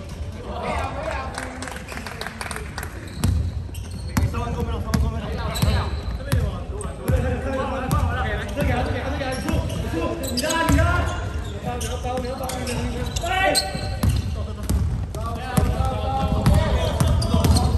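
A basketball bounces on a hard floor in a large echoing hall.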